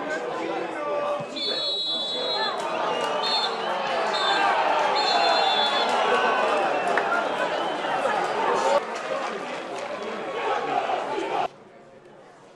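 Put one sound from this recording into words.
A large crowd in a stadium cheers and shouts loudly.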